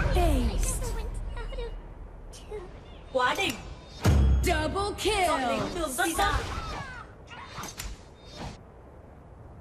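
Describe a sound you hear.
Video game fight effects clash and chime.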